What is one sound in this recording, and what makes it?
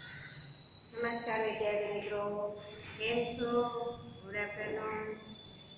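A middle-aged woman speaks clearly, close by.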